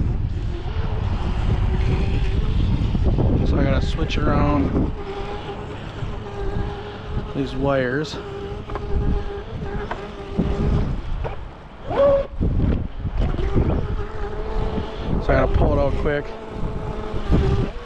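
A small boat motor whines steadily over water.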